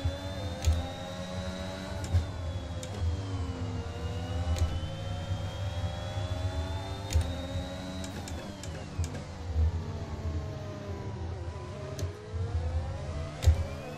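A racing car engine screams at high revs, dropping in pitch as it shifts down and rising again as it speeds up.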